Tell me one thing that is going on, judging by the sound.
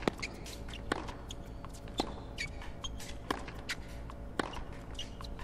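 A tennis ball is struck sharply by a racket, back and forth.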